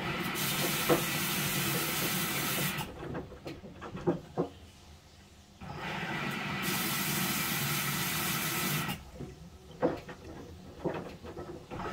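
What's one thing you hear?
Wet laundry thumps against the drum of a front-loading washing machine.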